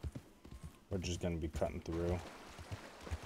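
Water splashes under a galloping horse.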